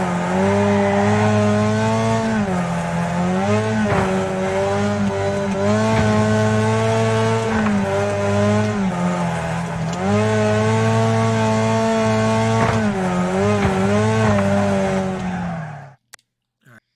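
A car engine roars steadily, rising and falling in pitch as the gears shift.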